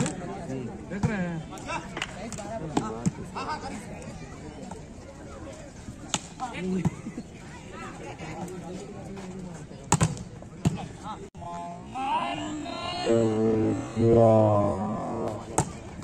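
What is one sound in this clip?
A ball is struck with sharp slaps.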